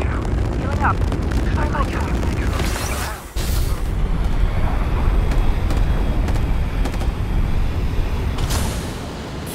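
Wind rushes and roars steadily during a fast glide through the air.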